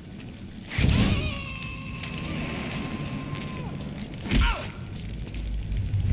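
A fire crackles in a burning barrel.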